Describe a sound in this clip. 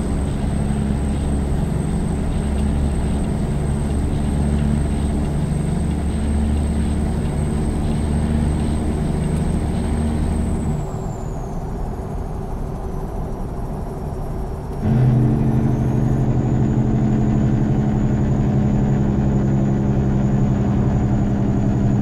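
A diesel semi truck engine drones while cruising on a highway.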